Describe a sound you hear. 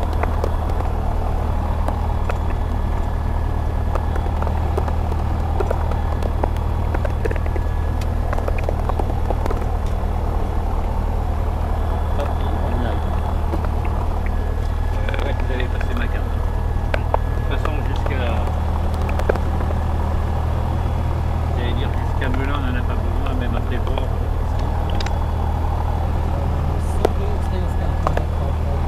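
A light aircraft engine drones steadily from inside the cabin.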